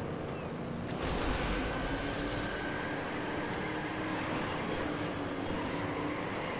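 Car engines surge louder with a rushing boost.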